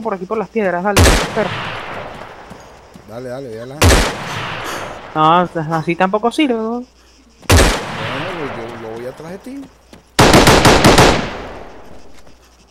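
A rifle fires loud, sharp shots that echo.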